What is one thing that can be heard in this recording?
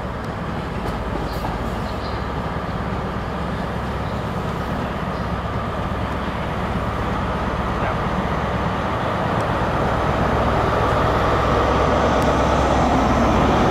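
A diesel train engine rumbles as a train approaches and grows steadily louder.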